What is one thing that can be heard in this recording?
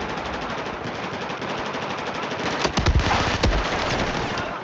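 A rifle fires a short burst of gunshots.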